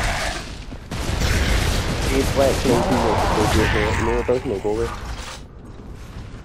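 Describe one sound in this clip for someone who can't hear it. Automatic rifles fire in rapid bursts.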